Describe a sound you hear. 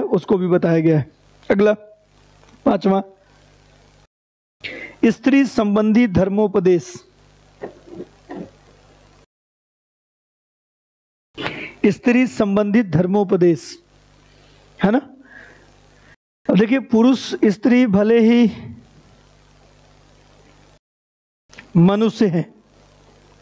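A man speaks with animation through a close headset microphone, with short pauses.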